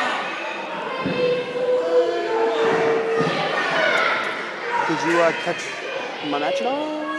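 Several people shout and whistle from the crowd.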